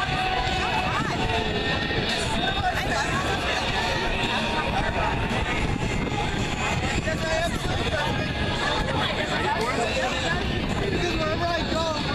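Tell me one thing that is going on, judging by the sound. A crowd chatters all around outdoors.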